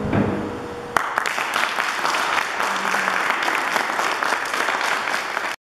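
An audience applauds in a room with some echo.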